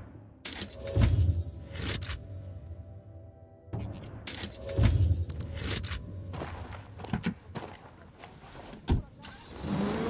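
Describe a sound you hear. Menu selections click and chime.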